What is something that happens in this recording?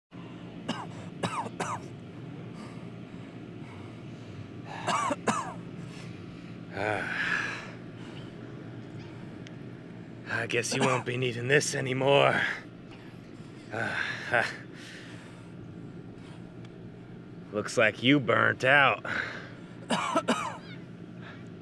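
A young man groans and speaks weakly, close by.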